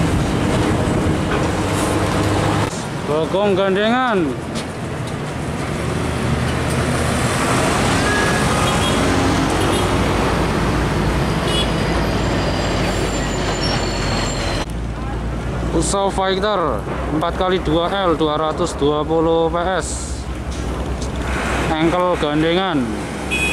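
Heavy truck engines rumble loudly as trucks drive past.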